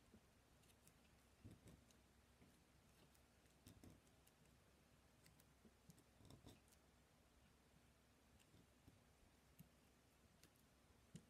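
Paper rustles and taps softly as hands handle it.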